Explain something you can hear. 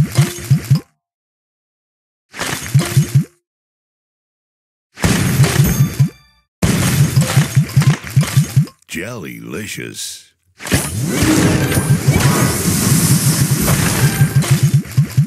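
Game candies pop and chime in quick bursts of bright notes.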